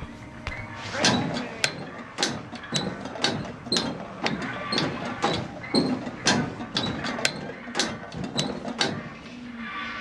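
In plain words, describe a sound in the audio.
Hands and feet clang on metal ladder rungs in a steady climbing rhythm.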